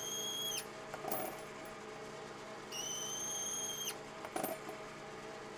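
A small metal part clicks and clatters into the machine.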